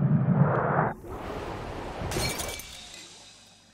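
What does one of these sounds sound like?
A plastic ball smashes and shatters on impact.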